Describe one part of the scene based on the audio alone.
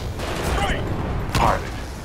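Gunfire bursts in a video game.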